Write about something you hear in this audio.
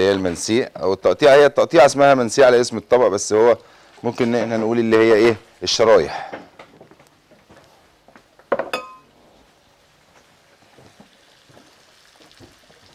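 Meat sizzles softly in hot oil in a pan.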